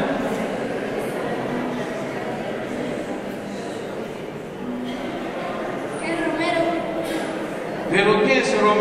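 An elderly man speaks through a microphone in a large echoing hall.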